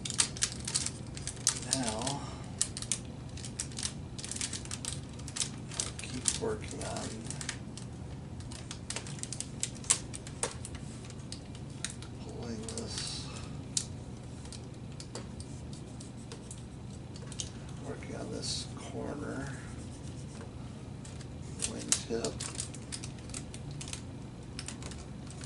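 Plastic film crinkles and crackles as it is handled.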